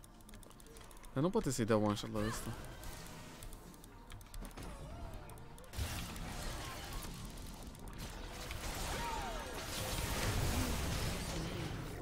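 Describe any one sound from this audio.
Fighting sound effects clash, zap and whoosh.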